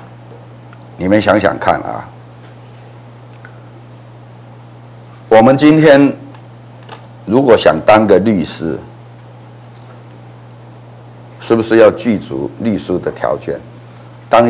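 An elderly man speaks calmly into a close microphone, in short phrases with long pauses.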